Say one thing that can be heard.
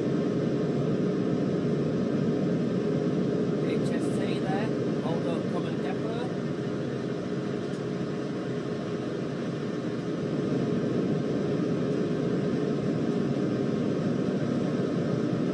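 A train engine rumbles steadily as the train runs along the tracks.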